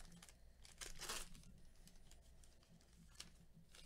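A plastic wrapper crinkles and rustles as hands tear it open.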